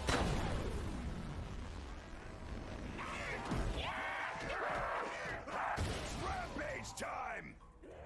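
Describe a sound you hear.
A gun fires in sharp bursts.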